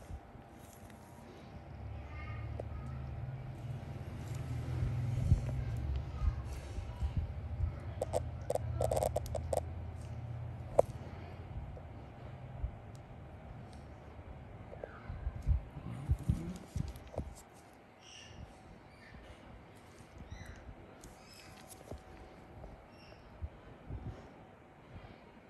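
Gloved fingers rub and press against skin, close up.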